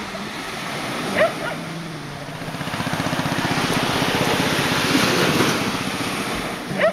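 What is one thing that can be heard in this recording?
Small waves wash gently onto a beach.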